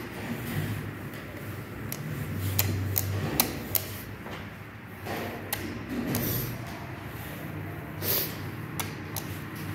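A button clicks several times as it is pressed.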